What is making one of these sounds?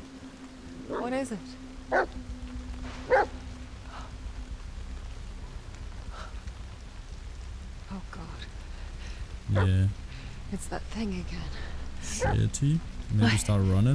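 A young woman speaks nervously, close by.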